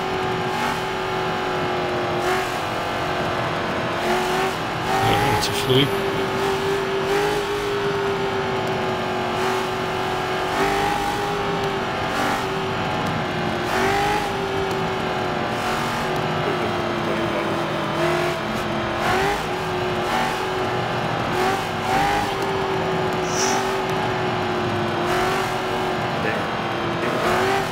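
A racing car engine drones steadily at high revs, shifting pitch as it slows and speeds up.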